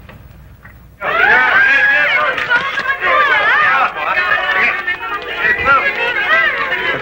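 A crowd of people shouts and screams nearby.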